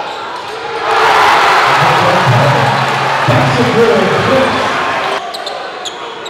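A crowd cheers and shouts loudly in an echoing gym.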